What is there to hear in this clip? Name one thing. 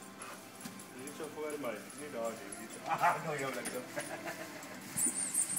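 A man talks playfully to a dog nearby.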